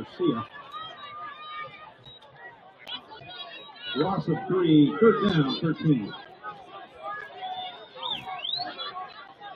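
A crowd of men chatters and calls out across an open field.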